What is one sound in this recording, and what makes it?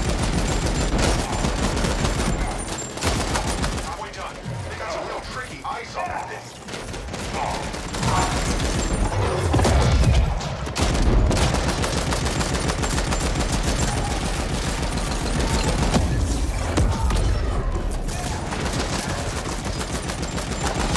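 Rapid gunfire crackles and explosions boom throughout.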